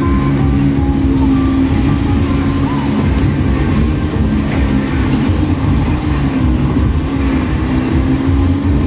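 A racing game's car engine roars steadily through loudspeakers.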